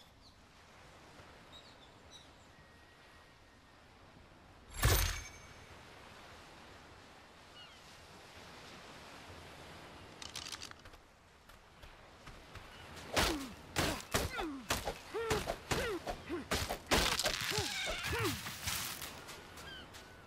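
Footsteps crunch on dirt and stones.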